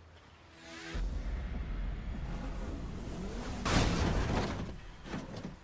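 A car crashes with a heavy metallic crunch.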